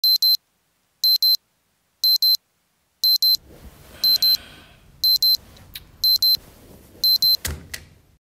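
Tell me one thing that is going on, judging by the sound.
An alarm clock beeps in quick double pulses once a second.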